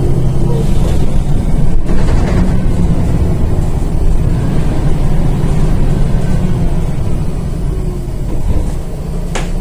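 A bus rumbles and rattles as it drives along.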